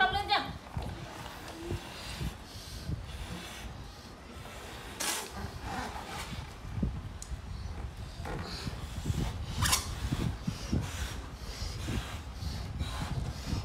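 A young boy blows air into a balloon.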